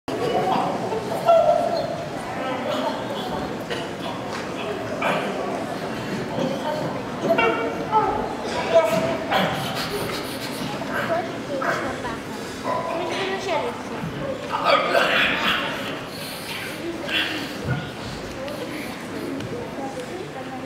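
An actor speaks and calls out expressively in a large echoing hall.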